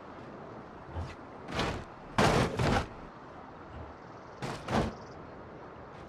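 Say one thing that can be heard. A heavy truck thumps hard over bumps in the road.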